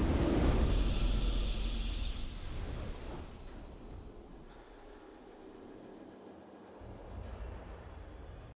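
Triumphant music swells and then fades.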